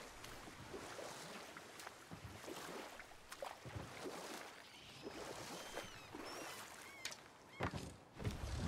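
An oar splashes rhythmically in water as a boat moves along.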